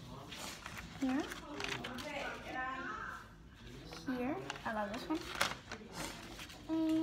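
A young girl talks close by in a lively voice.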